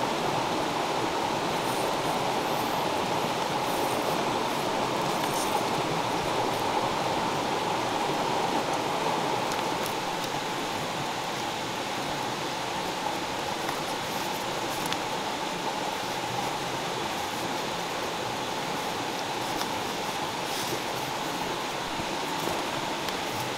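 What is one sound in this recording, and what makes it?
Cord rustles and scrapes against bamboo poles as hands tie it.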